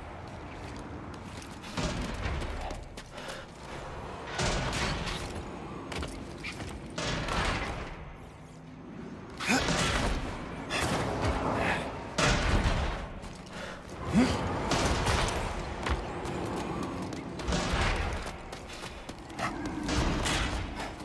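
Hands and boots clank on a metal grate during climbing.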